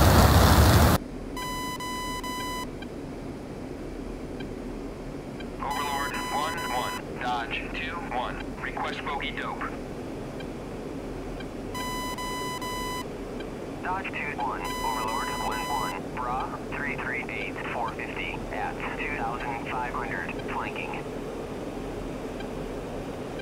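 A jet engine hums, muffled from inside a cockpit.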